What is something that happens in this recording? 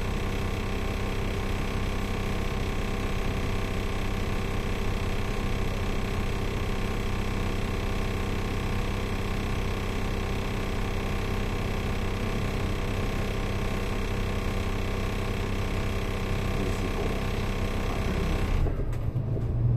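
An engine idles nearby with a steady hum.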